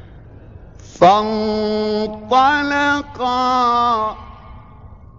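A man chants in a long, drawn-out melodic voice, heard through an old, hissy recording.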